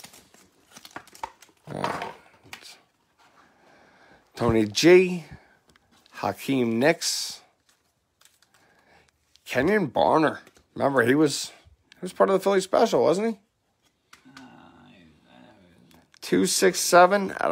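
Trading cards slide and click against each other in hands.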